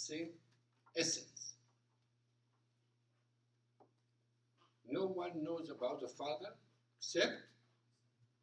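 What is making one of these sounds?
An elderly man speaks calmly through a clip-on microphone, pausing between phrases.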